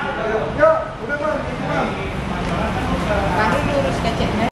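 An escalator hums steadily.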